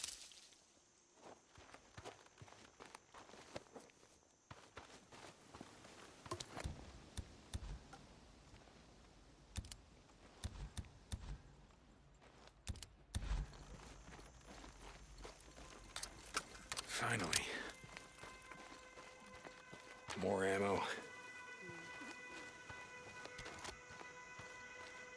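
Footsteps run over dry gravel and dirt.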